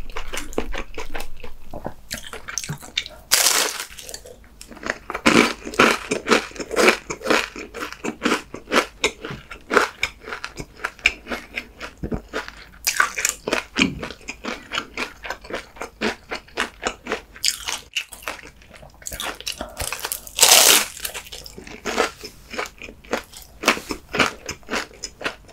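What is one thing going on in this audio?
A man chews food loudly and wetly, close to a microphone.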